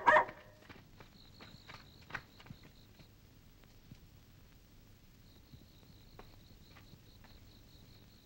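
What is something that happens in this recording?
A boy's footsteps patter on dirt outdoors.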